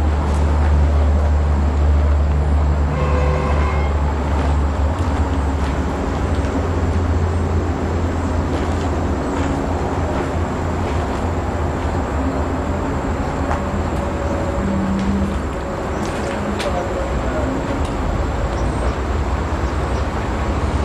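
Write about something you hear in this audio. Wind rumbles steadily outdoors.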